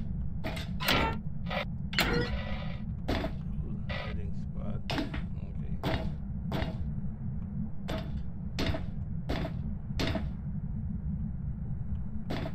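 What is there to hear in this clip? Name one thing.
Footsteps thud at an even walking pace on a hard floor.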